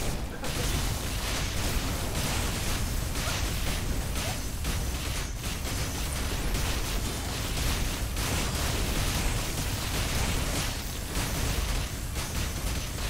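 Sword strikes and magic blasts clash and boom rapidly in a game fight.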